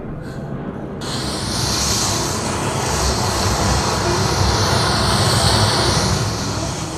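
A young woman sings through a microphone in a large hall.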